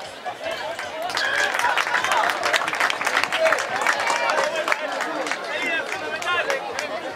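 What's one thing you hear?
A crowd of spectators cheers from the stands.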